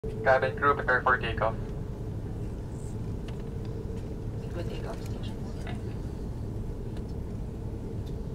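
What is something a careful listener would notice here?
A jet airliner's engines hum steadily as the plane taxis.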